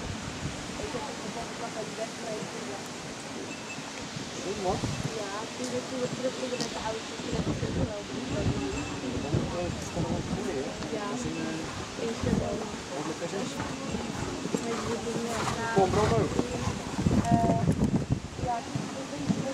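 A horse's hooves thud softly on sand.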